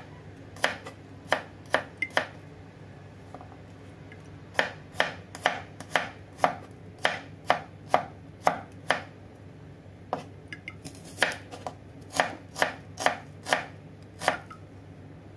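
A knife chops sharply and rhythmically on a wooden board.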